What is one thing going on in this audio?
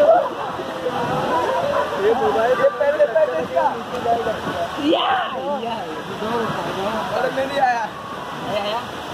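Water splashes gently around floating tubes.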